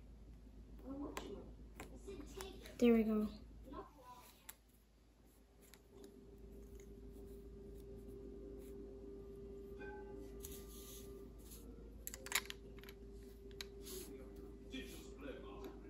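Small plastic toy figures click and tap against a tabletop.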